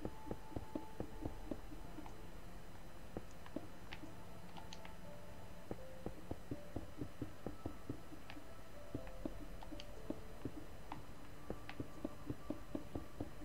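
Blocks thud softly into place, over and over.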